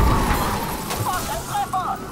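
A van crashes into a car with a loud bang.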